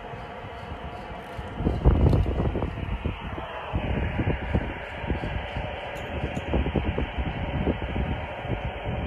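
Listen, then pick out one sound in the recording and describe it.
Wind gusts rumble across the microphone outdoors.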